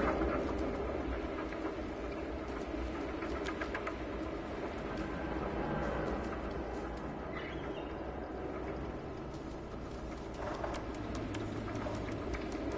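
A cat's paws patter softly on hard ground.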